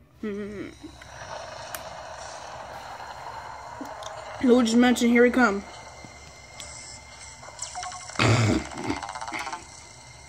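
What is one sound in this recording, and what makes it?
Soft music plays through a small handheld game speaker.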